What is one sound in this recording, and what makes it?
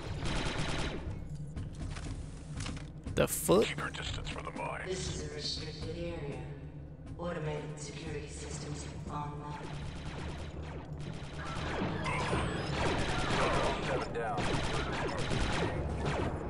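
Blaster rifles fire in rapid bursts of sharp zaps.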